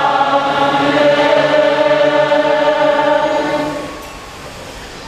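A choir sings a sustained chant in a large, echoing hall, then stops.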